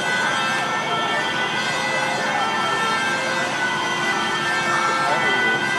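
A fire engine's motor hums steadily nearby.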